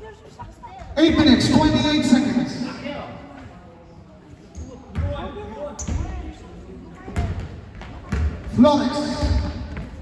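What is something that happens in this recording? Young people shout and cheer nearby.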